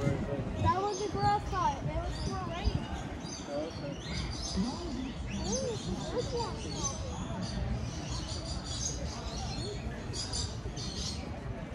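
People chat at a distance outdoors.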